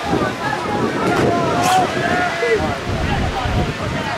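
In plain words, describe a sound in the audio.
A man nearby shouts loudly.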